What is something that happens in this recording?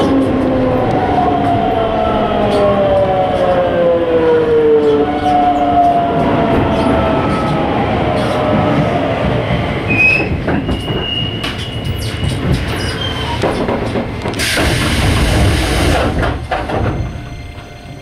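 A subway train rumbles loudly along the tracks.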